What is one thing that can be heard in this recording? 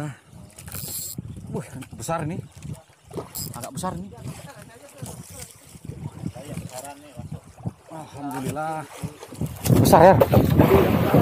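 Waves slosh against the side of a small boat.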